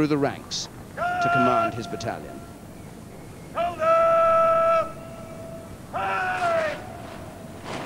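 A man shouts long, drawn-out parade commands outdoors.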